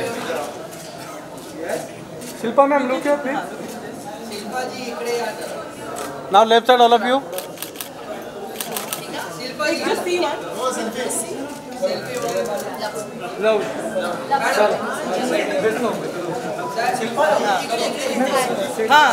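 A crowd of men and women chatter and call out close by.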